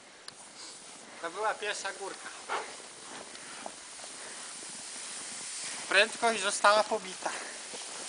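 A man talks calmly nearby, outdoors.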